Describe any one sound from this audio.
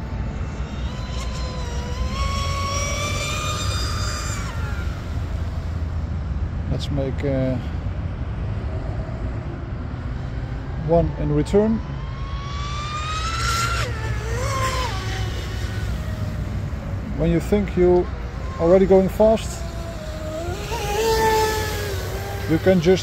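A small motor boat whines at high pitch as it speeds across water, rising and falling in pitch.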